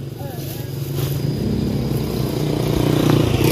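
A plastic bag rustles as fruit is dropped into it.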